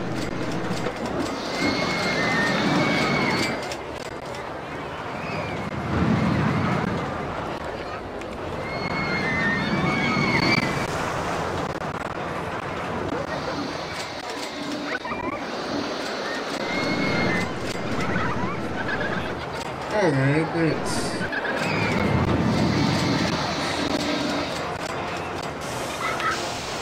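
A roller coaster rumbles and clatters along its track.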